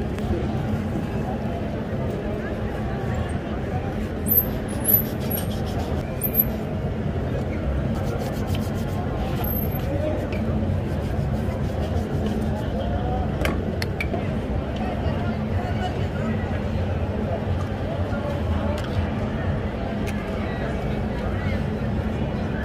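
A brush scrubs against a leather shoe.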